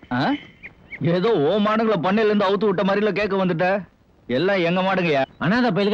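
A man sings a melodic song.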